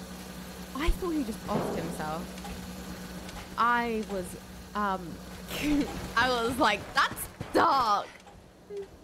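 A young woman talks and exclaims into a close microphone with animation.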